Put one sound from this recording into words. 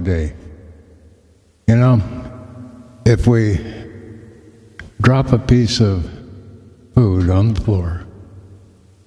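A man speaks into a microphone close by, in short bursts with pauses between.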